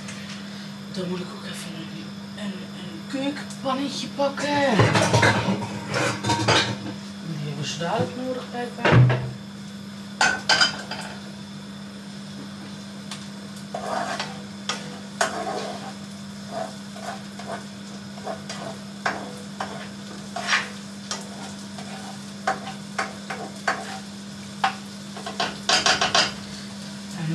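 A cooker hood hums steadily.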